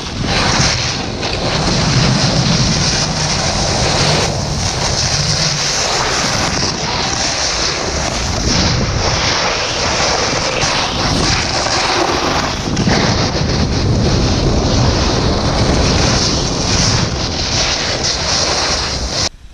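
A snowboard scrapes and hisses over hard snow.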